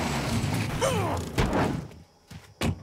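A car engine revs and then cuts out.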